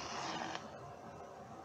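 A man exhales a long breath close by.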